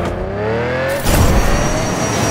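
A toy car crashes with a loud thump.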